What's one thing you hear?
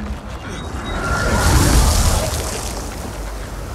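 Debris and dust hiss and scatter.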